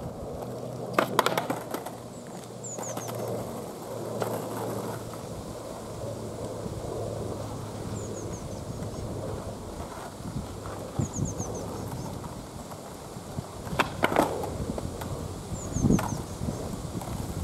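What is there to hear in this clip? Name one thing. A skateboard clacks sharply against the pavement.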